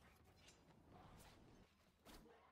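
A fireball whooshes past.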